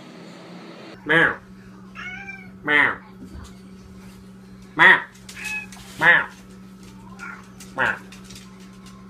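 A cat yowls loudly several times.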